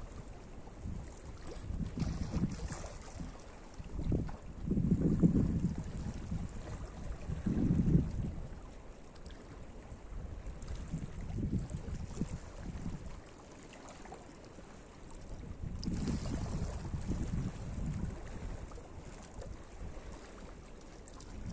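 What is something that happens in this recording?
Small waves lap gently against rocks on the shore.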